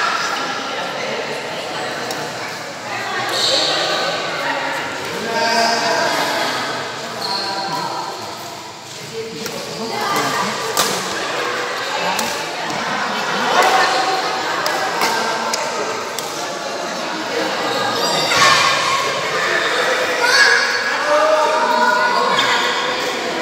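Men and children chatter and call out in a large echoing hall.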